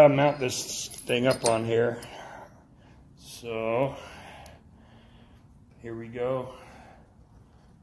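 Steel blocks clink and knock against a metal bench.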